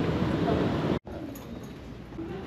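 Footsteps fall softly on carpet.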